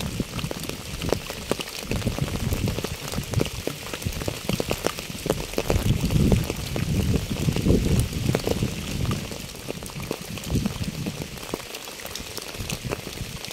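Rain patters steadily on a wet path and puddles.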